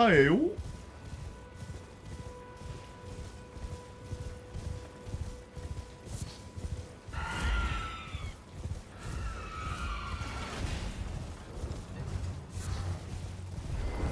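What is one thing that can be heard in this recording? A horse gallops over grass.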